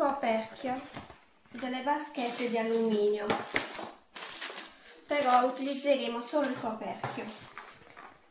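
A sheet of paper rustles as it is moved.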